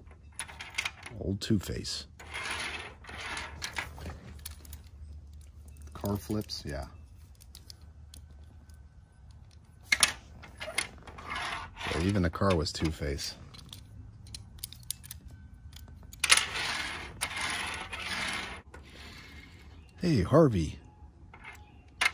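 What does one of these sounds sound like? Small toy cars click and clatter as they are set down on a hard surface.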